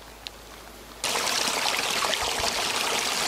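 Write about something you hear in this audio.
A shallow stream trickles nearby.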